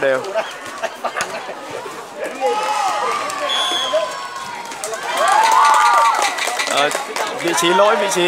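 A crowd of young people cheers and shouts outdoors.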